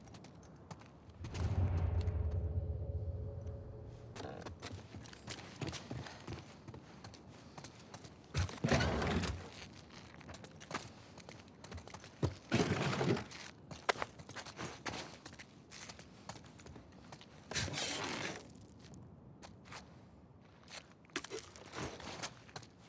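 Footsteps tread slowly across a hard floor indoors.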